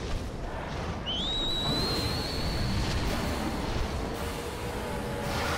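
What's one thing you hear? A dragon lets out a long, high screech.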